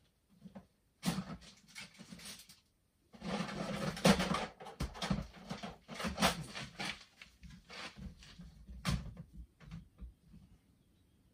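A man rummages through plastic bags.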